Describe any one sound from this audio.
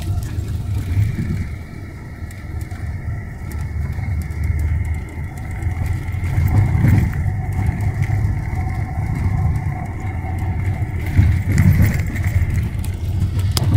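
A bus engine rumbles steadily while the bus drives along a street.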